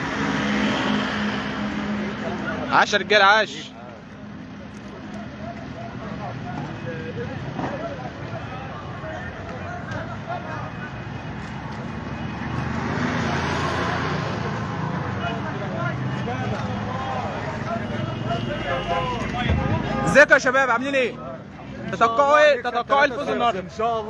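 A crowd of young men chatters outdoors.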